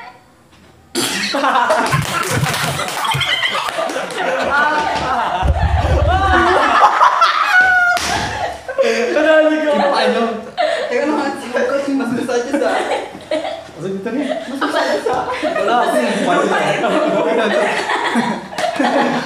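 A group of young men and teenage boys burst into loud laughter close by.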